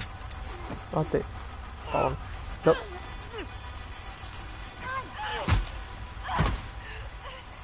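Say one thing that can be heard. A man shouts and groans with strain close by.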